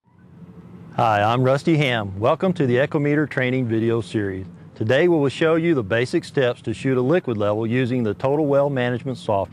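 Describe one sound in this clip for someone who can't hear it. A middle-aged man talks calmly and clearly, close by.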